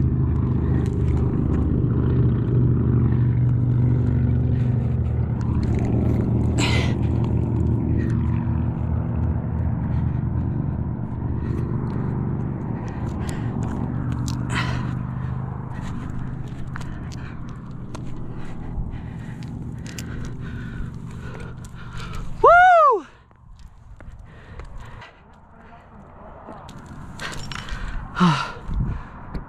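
Climbing shoes scuff on rock.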